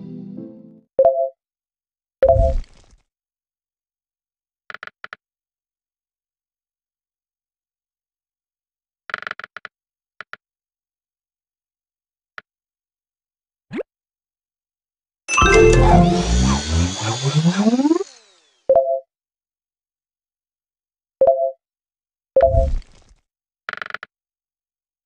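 Short electronic chimes sound.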